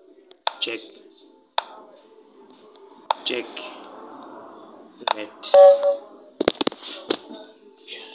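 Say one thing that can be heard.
Short digital clicks sound as chess pieces move.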